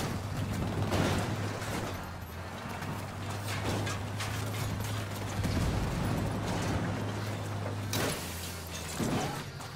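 A van engine roars steadily as it drives.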